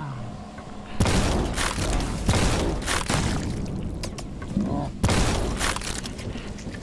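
A gun fires loud, rapid blasts.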